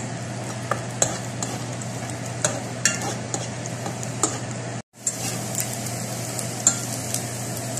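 A fork scrapes and clicks against a pan.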